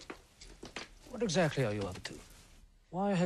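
A second man answers, close by.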